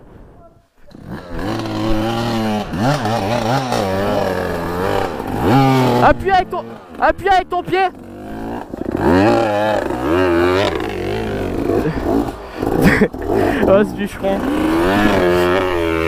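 Dirt bike engines rev and sputter up close.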